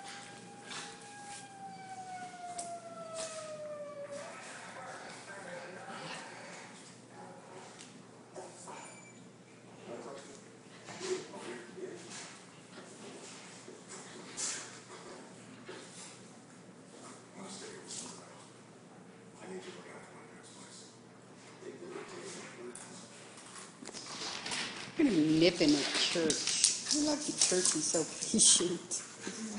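Two dogs play-fight, growling and snarling.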